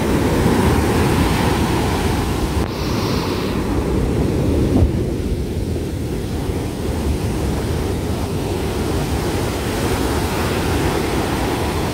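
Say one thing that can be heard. Ocean waves break and crash, rumbling steadily.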